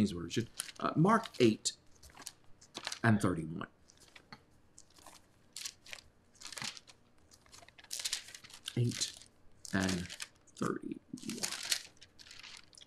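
A man reads aloud calmly and slowly, close by.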